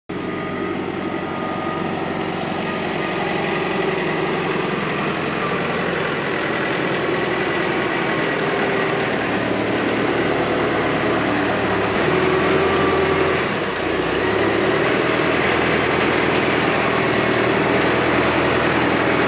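A tractor engine rumbles, growing louder as it approaches.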